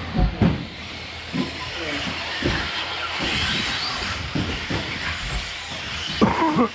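Small electric model cars whine as they race over a track.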